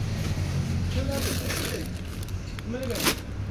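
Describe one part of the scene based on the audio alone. A plastic bag of nuts crinkles in a hand.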